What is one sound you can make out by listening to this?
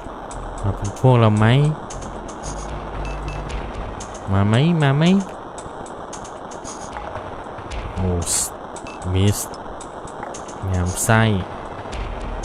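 Short, bright electronic chirps from a video game glide up and down now and then.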